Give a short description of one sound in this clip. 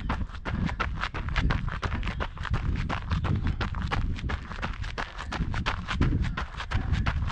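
Wind buffets a microphone with a low rumble.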